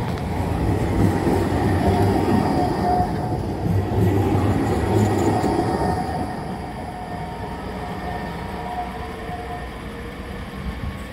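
A tram rumbles past close by, then moves off and fades.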